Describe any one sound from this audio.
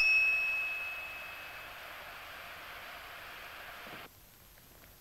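A bell rings and its tone slowly fades.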